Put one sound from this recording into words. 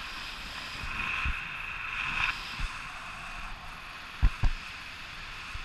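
Wind buffets the microphone in sudden gusts.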